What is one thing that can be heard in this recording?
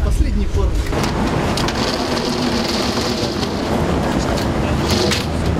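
A metal shutter rattles as a woman pulls it down with a pole.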